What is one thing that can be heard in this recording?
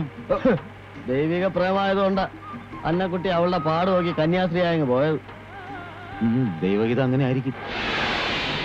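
A man sings loudly with a sustained melody.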